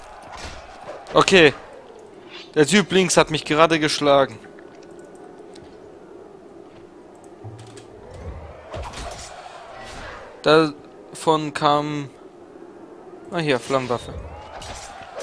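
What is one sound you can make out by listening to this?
Men grunt and shout in combat.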